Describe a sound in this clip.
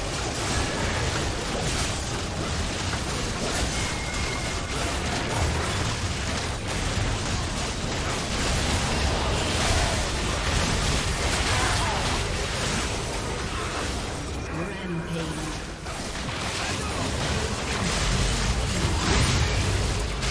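Spell effects crackle and boom during a fight.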